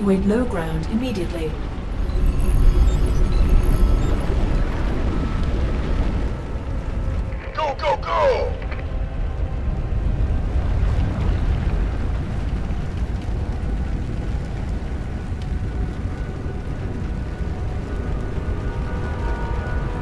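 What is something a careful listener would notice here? A heavy engine hums with a deep, steady rumble.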